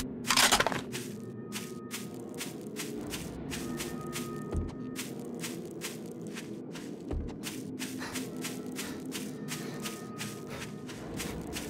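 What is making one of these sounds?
Footsteps crunch steadily over dry ground.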